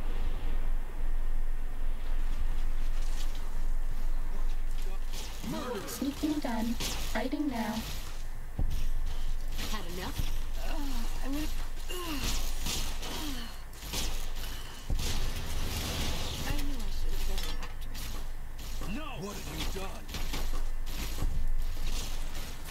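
A futuristic energy gun fires in sharp zaps.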